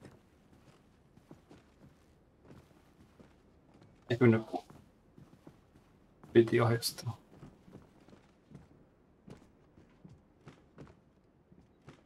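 Footsteps tread softly on a wooden floor.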